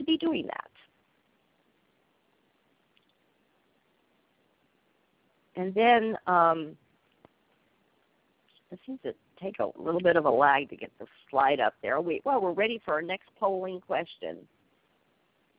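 A woman speaks calmly into a microphone, in short phrases with pauses.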